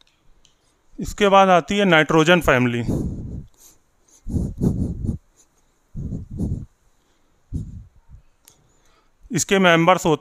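A man speaks calmly into a headset microphone.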